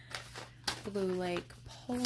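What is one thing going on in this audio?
A paper seed packet rustles in a hand.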